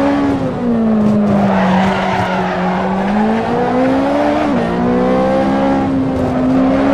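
A car engine hums and rises and falls in pitch as it accelerates and shifts gear.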